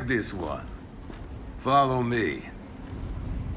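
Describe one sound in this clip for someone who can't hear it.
A gruff older man speaks calmly and close.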